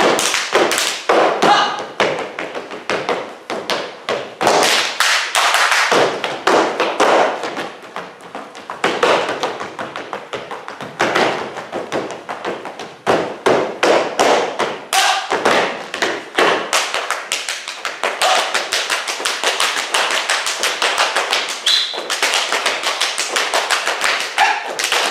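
Hands slap against legs and shoes in quick rhythm.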